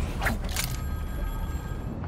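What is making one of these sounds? Footsteps patter quickly on a hard floor.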